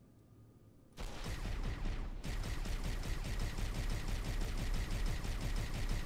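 A plasma gun fires rapid bursts of shots.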